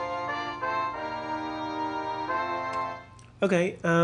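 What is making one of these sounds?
Synthesized instrument notes play a short, steady melody.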